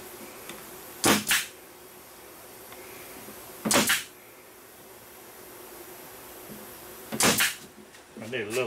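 A pneumatic stapler fires staples into wood with sharp bursts.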